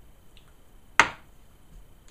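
A glass is set down on a counter with a knock.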